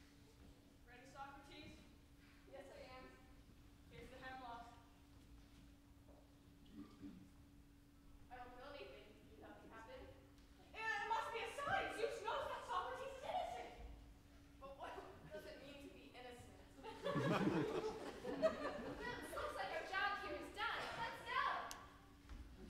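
Young actors speak their lines from a distance in a large hall.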